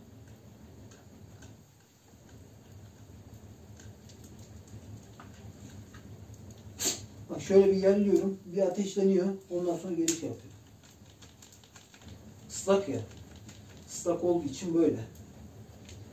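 A wood fire crackles softly in a stove.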